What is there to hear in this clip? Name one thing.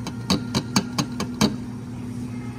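Ice cubes clatter into a glass.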